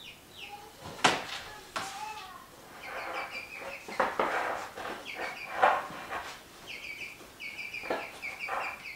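Knocks and thuds ring out.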